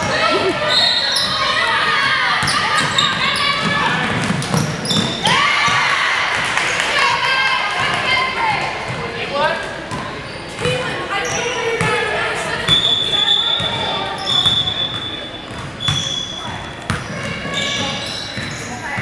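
Young women shout and call out to each other across a large echoing gym.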